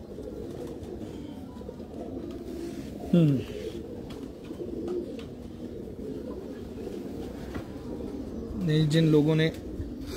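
Feathers rustle softly as a hand spreads a pigeon's wing.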